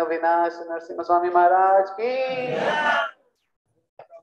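An elderly man chants in a drawn-out voice into a microphone.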